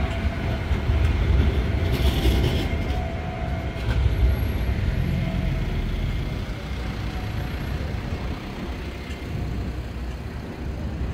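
A car engine idles close by.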